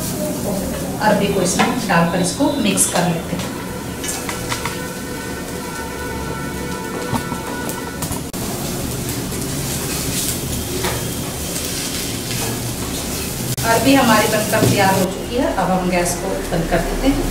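A woman talks calmly nearby.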